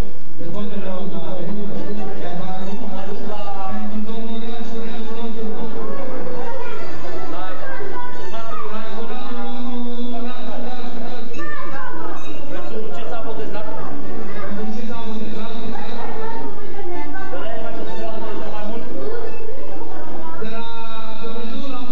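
A man sings through a microphone over a loudspeaker.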